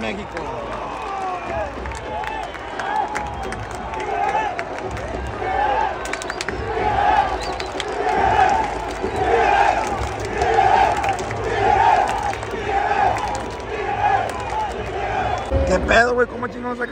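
A large crowd chants loudly in rhythm in an open stadium.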